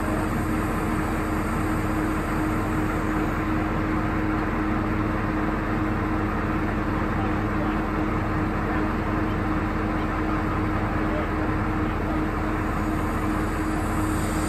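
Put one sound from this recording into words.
A heavy truck's diesel engine idles steadily nearby.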